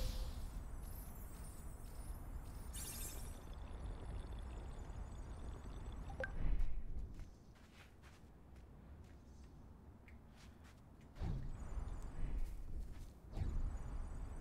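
Jet boosters hiss and roar in bursts.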